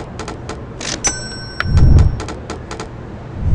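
A short electronic chime rings out.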